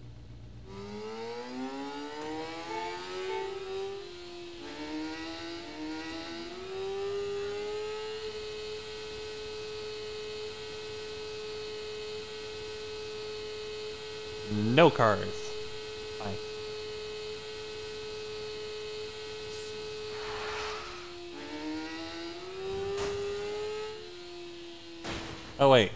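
A motorcycle engine revs up through its gears, then holds a steady high drone.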